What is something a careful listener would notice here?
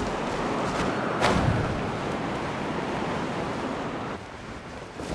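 Wind rushes loudly past during a glide through the air.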